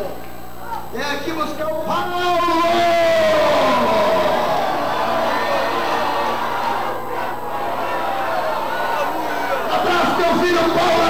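A man shouts with fervour into a microphone, heard through loudspeakers in an echoing space.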